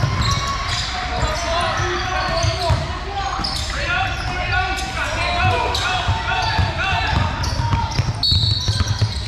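Sneakers squeak sharply on a hardwood floor in a large echoing gym.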